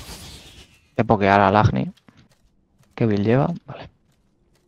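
A young man speaks loudly into a microphone.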